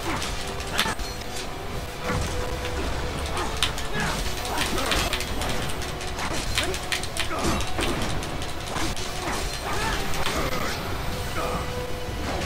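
Sword blades clash and slash with sharp metallic hits.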